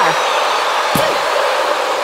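A body slams onto a wrestling ring mat with a thud.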